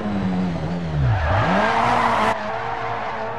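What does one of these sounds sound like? Tyres skid and hiss on gravel.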